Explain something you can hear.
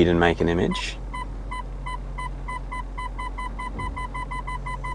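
A parking sensor beeps in a quick steady rhythm.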